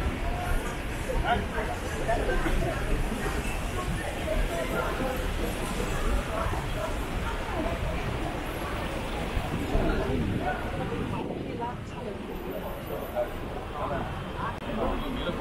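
Outdoor street noise hums steadily.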